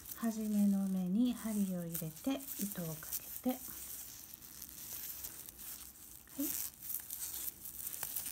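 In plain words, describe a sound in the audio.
Yarn rustles softly as a crochet hook pulls it through.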